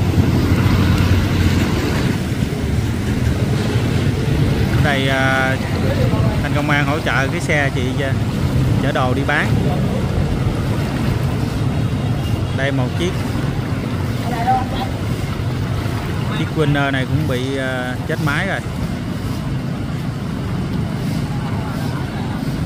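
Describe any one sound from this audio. Water splashes as motorbikes and people wade through a flood.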